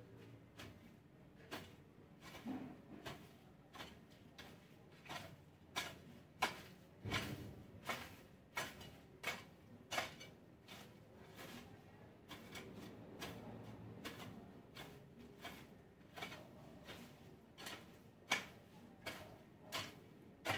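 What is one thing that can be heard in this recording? A rake scrapes and rustles through dry leaves and grass in repeated strokes.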